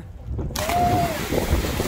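Two bodies splash loudly into the water.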